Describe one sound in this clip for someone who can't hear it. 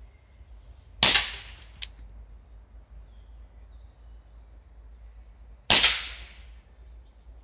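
A pistol fires sharp, loud shots that echo through the trees.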